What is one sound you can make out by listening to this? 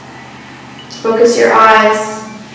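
A woman chants a long, steady tone close by.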